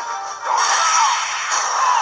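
A heavy blow lands with a loud, booming crash.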